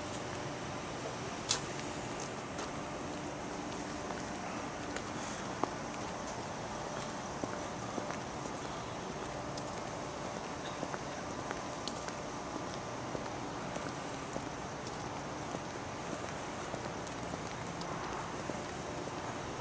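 Footsteps scuff softly on pavement.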